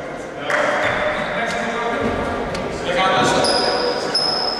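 Men shout and call out in a large echoing hall.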